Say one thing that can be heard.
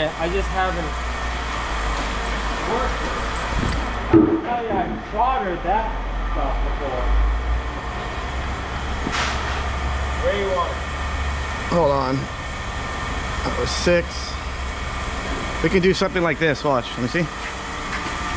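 A man talks casually, close by.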